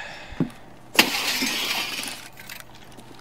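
Window glass shatters and the shards tinkle down.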